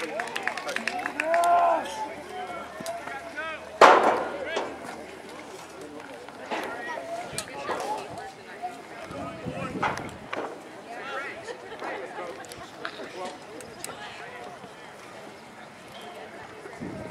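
Men and boys chatter and call out across an open field.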